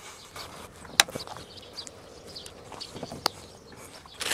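A plastic clip snaps loose with a sharp click.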